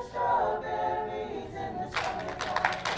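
A choir of young voices sings a sustained chord in a large hall.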